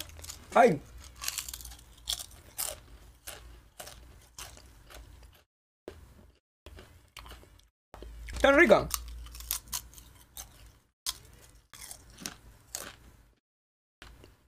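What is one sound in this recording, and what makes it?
A young man crunches potato chips.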